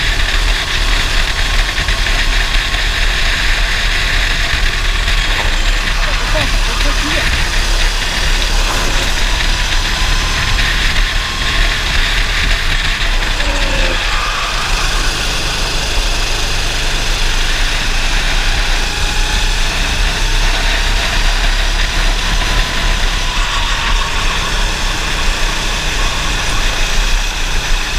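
A racing kart engine runs at full throttle up close.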